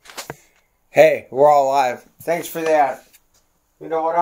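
A man talks loudly and animatedly, very close by.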